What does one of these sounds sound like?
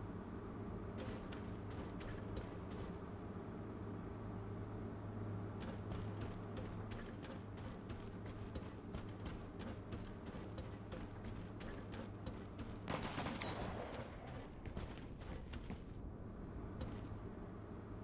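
Heavy boots thud quickly on hard floor and stairs.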